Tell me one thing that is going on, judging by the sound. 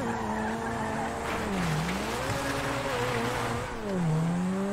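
Tyres squeal on pavement during a spinning skid.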